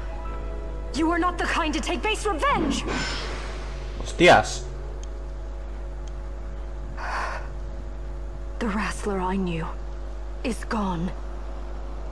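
A young woman speaks angrily, close by.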